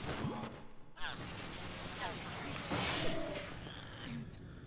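A ghostly whoosh swirls as a ghost bursts out of a glowing television.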